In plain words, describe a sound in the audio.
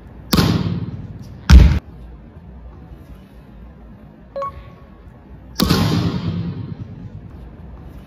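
A volleyball is struck hard by a hand, ringing out in a large echoing hall.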